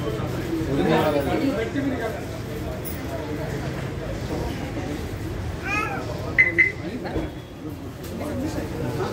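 Men and women chatter nearby in a small crowd.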